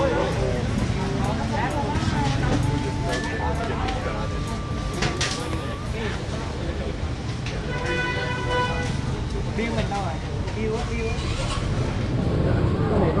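People chatter in a busy, noisy room.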